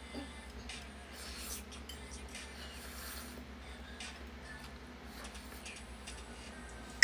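A young woman slurps and chews food close to a microphone.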